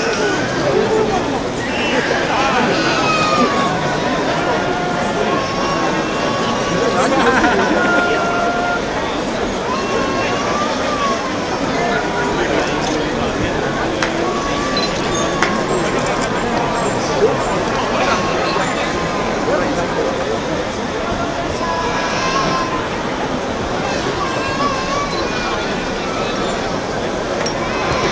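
Men and women in the crowd call out and cheer now and then.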